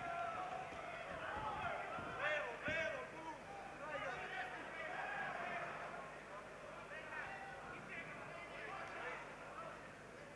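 Boxing gloves thud against a boxer's body.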